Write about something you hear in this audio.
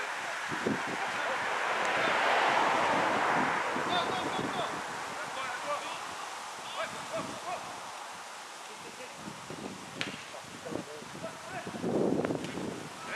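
Men shout to each other across an outdoor football pitch, heard from a distance.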